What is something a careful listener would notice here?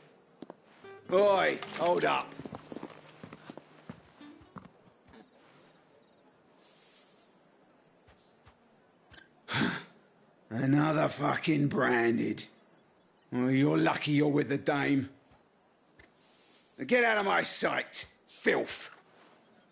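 A man in armour calls out gruffly and speaks with contempt, close by.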